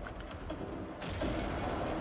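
Heavy gunfire rattles close by.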